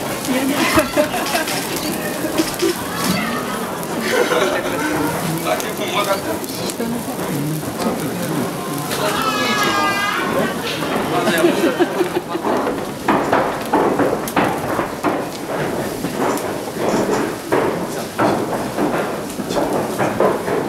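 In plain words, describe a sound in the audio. Sparks sputter and fizz from a burning torch.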